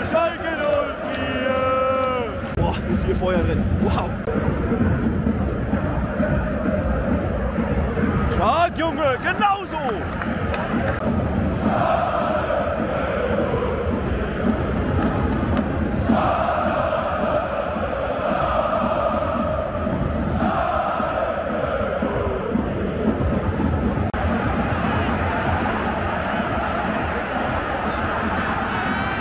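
A large stadium crowd sings and chants loudly, echoing around the stands.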